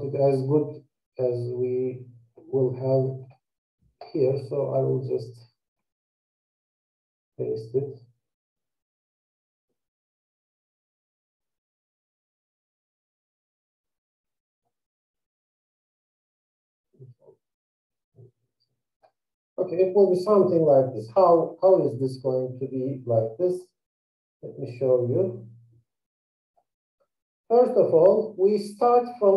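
A man speaks calmly and explains, close to a microphone, with long pauses.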